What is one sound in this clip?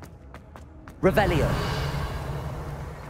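A magical shimmer rings out with a rising chime.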